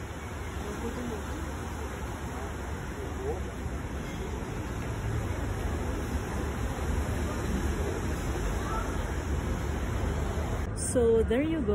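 Water from a fountain hisses and splashes in the distance.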